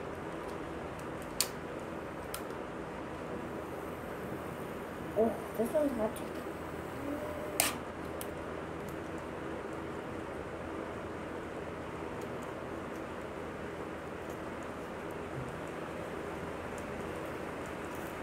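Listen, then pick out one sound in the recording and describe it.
Tape crinkles between fingers.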